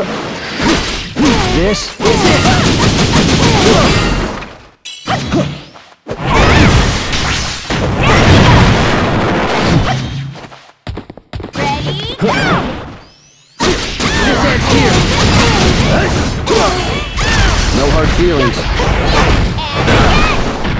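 Swords slash and strike with sharp metallic hits.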